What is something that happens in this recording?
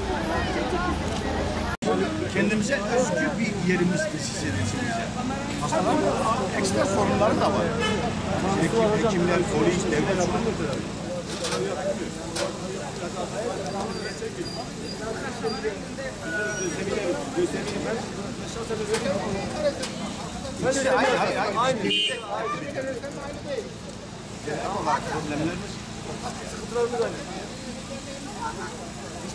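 A crowd murmurs in the background outdoors.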